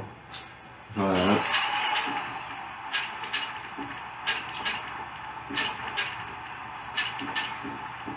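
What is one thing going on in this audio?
A crowd cheers and murmurs through a television loudspeaker.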